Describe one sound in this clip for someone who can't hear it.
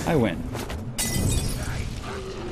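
A bottle explodes in a burst of fire.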